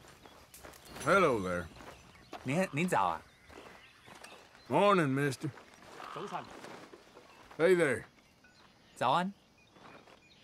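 A man speaks in short, calm greetings, close by.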